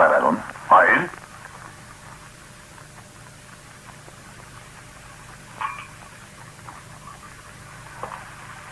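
A man speaks in a few short, calm phrases, with long pauses between them.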